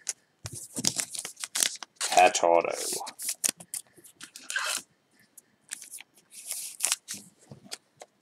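A plastic card sleeve crinkles and rustles between fingers.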